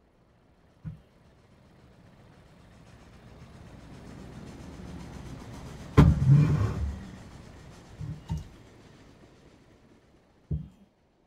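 A rushing wind swells slowly, then fades away.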